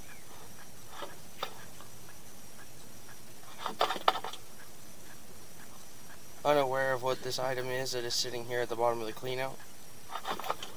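A small metal probe knocks and scrapes against a rough pipe wall.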